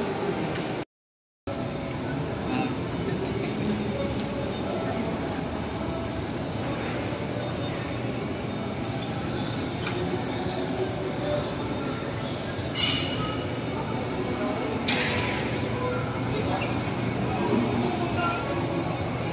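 The chatter of a crowd echoes in a large hall.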